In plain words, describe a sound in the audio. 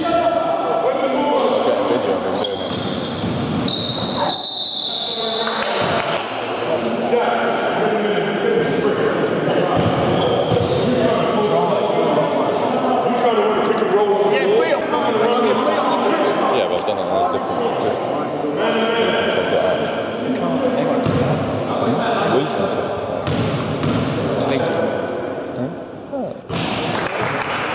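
Men talk and call out across a large echoing hall.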